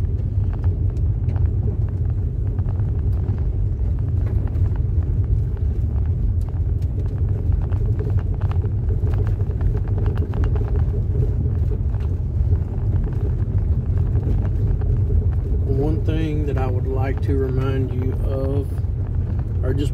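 Tyres crunch and rattle over a gravel dirt road.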